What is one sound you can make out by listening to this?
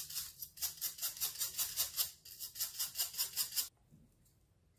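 A stiff brush scrubs quickly back and forth.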